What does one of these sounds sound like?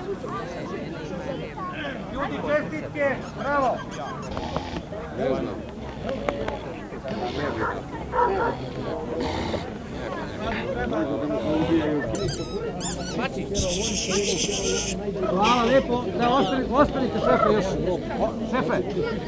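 Several men and women talk and chat nearby outdoors.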